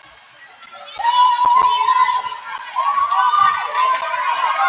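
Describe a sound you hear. Young women players call out to each other.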